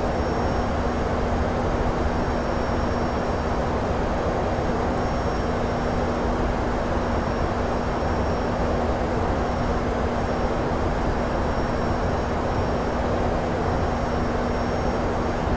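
Air rushes steadily past an airliner's cockpit.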